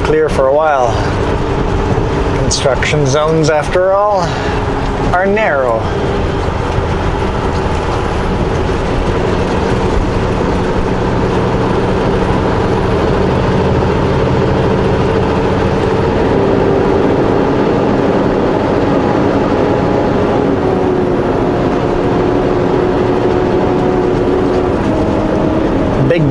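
A vehicle's engine hums steadily as it drives along a highway.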